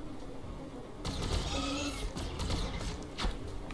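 Energy weapons fire with a crackling burst.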